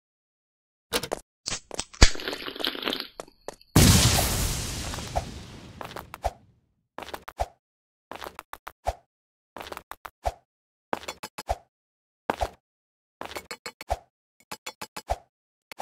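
Footsteps tap on hard ground at an even pace.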